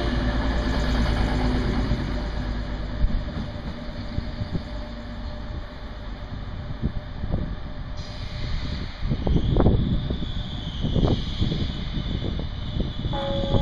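A high-speed train hums and rumbles as it pulls away and fades into the distance.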